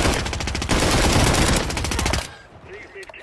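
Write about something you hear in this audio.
A rifle fires a rapid, loud burst of gunshots that stops abruptly.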